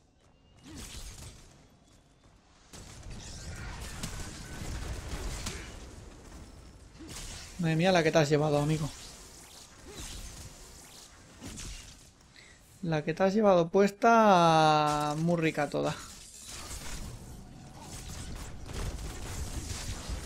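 Game weapons fire and magic blasts crackle in a fight.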